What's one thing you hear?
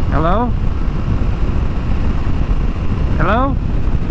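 Wind buffets loudly past a motorcycle rider's helmet.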